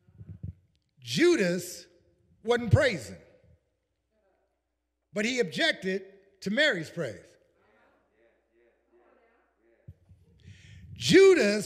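An older man speaks with animation into a microphone, pausing between phrases.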